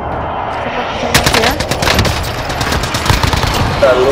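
A single loud rifle shot cracks.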